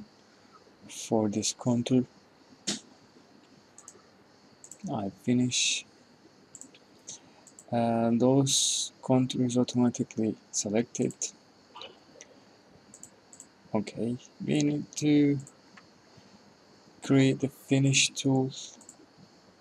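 A man talks calmly into a nearby microphone, in short bursts with pauses.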